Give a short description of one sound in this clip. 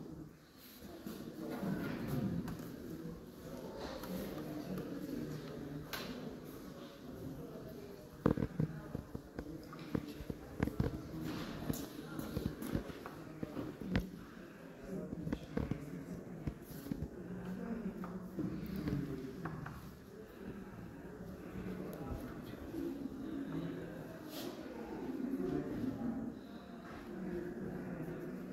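Chalk scratches and taps on a hard board.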